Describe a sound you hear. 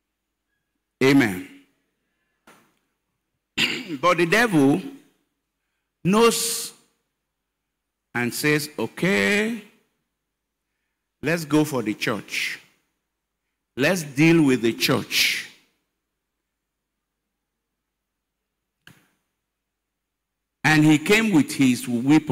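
An elderly man preaches with animation into a microphone, in short bursts with pauses, heard over loudspeakers.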